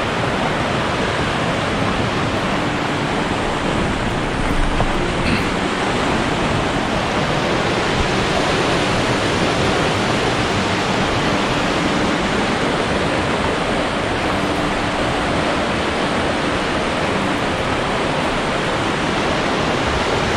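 A fast river rushes and churns steadily nearby.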